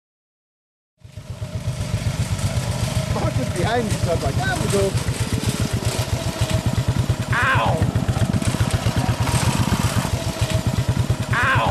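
A go-kart engine drones steadily close by.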